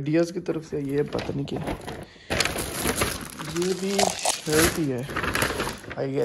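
A paper bag rustles as it is handled.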